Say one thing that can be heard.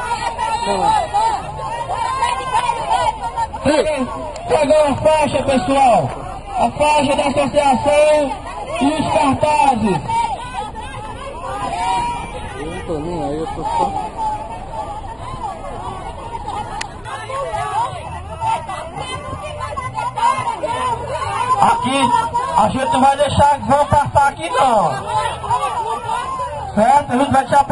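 A crowd of men and women talk and shout outdoors.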